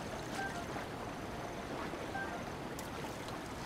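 Water sloshes and splashes as someone swims.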